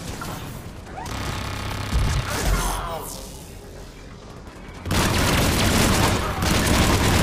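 Energy blasts crackle and hiss.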